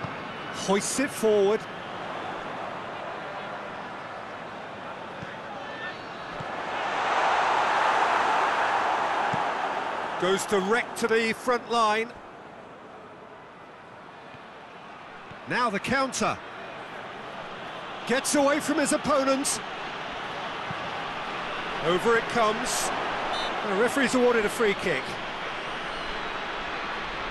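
A stadium crowd murmurs steadily and swells into a roar.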